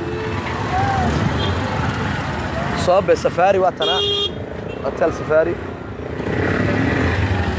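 A motor rickshaw engine putters close by.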